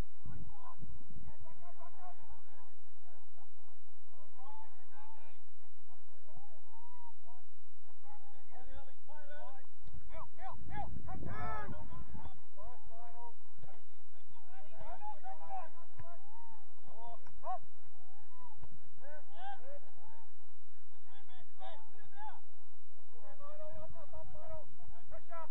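Young players shout to each other from across an open field.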